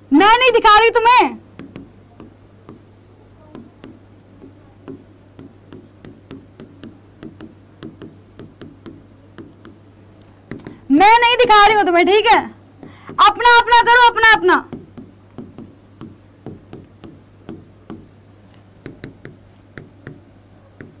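A marker taps and scrapes on a board.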